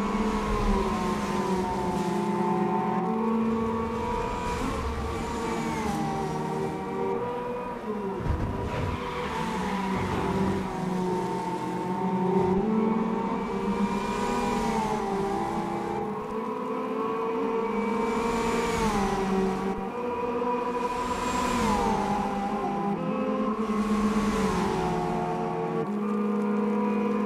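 Racing car engines roar loudly, rising and dropping in pitch as they shift gears.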